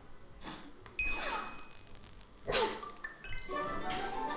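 Bright electronic music plays through a speaker.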